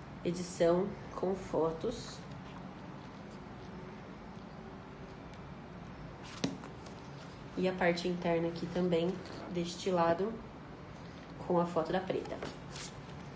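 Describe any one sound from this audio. Book pages rustle as they are flipped.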